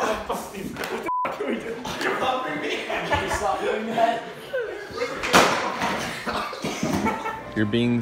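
Young men shout and laugh nearby.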